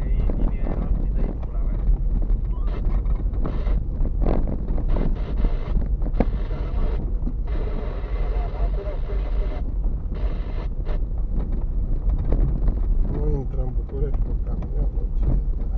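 Tyres crunch and rumble over a rough dirt road.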